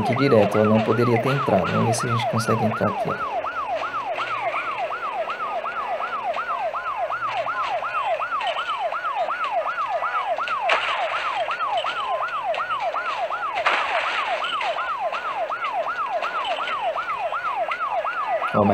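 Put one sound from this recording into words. A fire engine siren wails rapidly and steadily.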